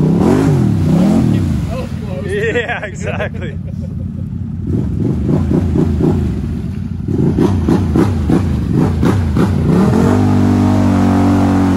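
Thick mud splashes and squelches under spinning tyres.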